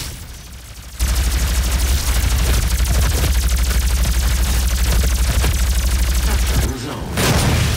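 An electric gun fires with a rapid, steady crackling buzz.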